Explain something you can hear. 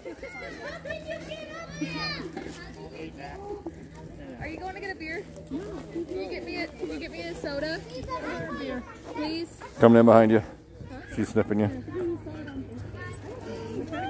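Women chat nearby.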